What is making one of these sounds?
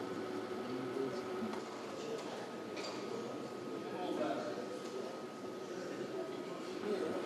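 Several men talk and murmur in a large echoing hall.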